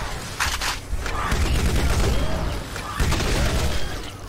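A rapid-fire gun rattles in a video game.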